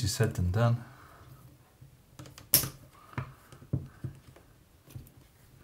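Small metal parts click and scrape as a screwdriver works on them.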